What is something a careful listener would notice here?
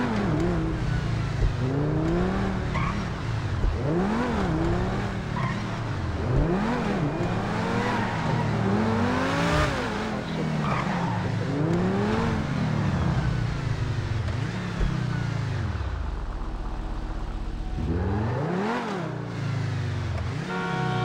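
A sports car engine revs up and down repeatedly as it accelerates and shifts gears.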